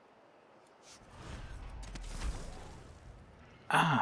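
A magical whoosh rushes past.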